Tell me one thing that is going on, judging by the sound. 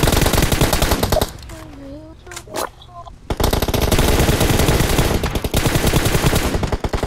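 Rapid gunfire rattles close by.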